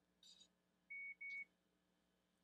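A headband speaker gives a short electronic beep as a button is pressed.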